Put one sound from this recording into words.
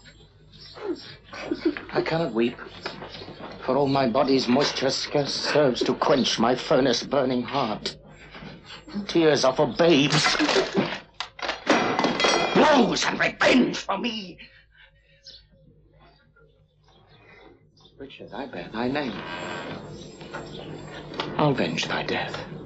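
A man speaks in a low, intense voice close by.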